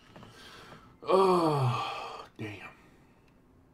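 A man groans in a long, falling voice.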